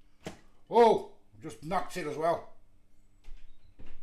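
A serving of food plops onto a plate.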